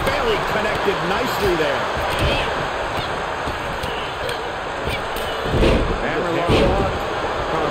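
A large crowd cheers loudly and steadily.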